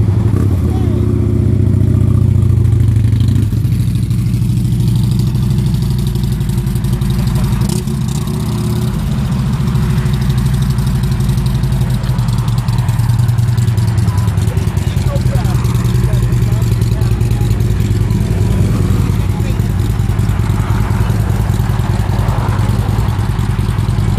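A motorcycle engine rumbles deeply and steadily close by.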